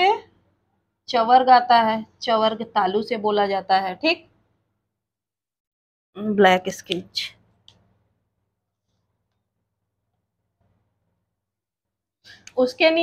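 A woman speaks clearly and steadily close by, explaining as if teaching.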